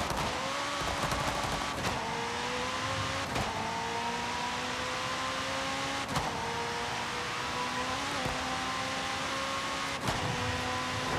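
A sports car engine roars and climbs through the gears, with sharp shifts.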